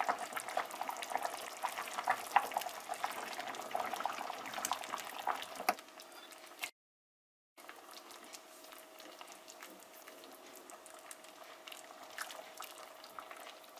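A metal ladle scrapes and clinks against a pot while stirring.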